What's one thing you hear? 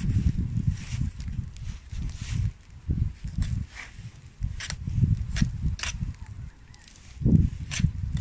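A knife scrapes and cuts through meat and gristle.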